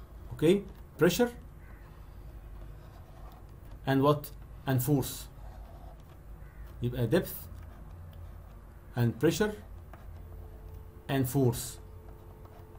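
A man speaks calmly in short phrases through an online call.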